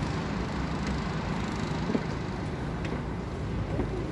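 City traffic hums steadily far below.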